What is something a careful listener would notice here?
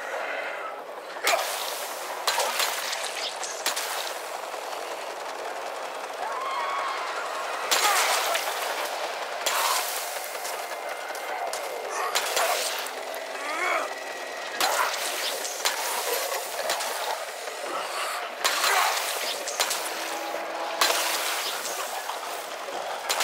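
Zombies snarl and groan.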